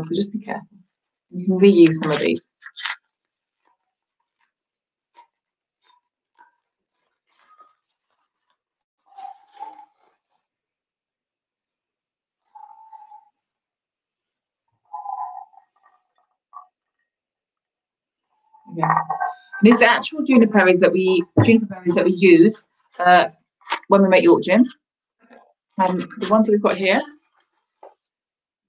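Paper crinkles as it is unwrapped.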